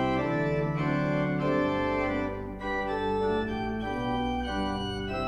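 A pipe organ plays slow, sustained chords that echo in a large hall.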